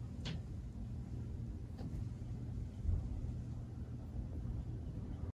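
A cat pads softly across a wooden floor.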